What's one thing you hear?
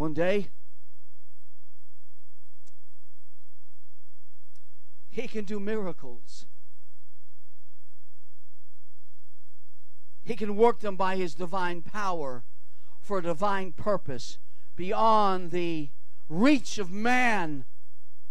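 An elderly man speaks with animation into a microphone, pausing between phrases.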